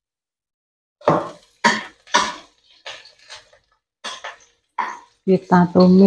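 A metal spatula scrapes and stirs in a pan.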